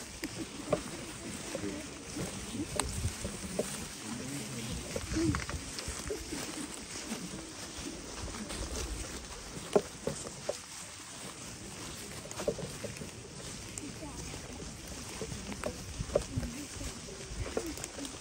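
Dry leaves rustle and crunch under many footsteps.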